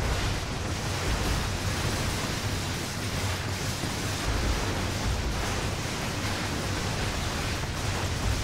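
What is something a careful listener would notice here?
Loud explosions boom and rumble.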